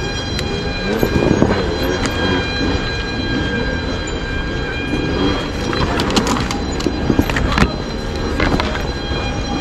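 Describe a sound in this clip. Tyres knock and scrape over rough ground and roots.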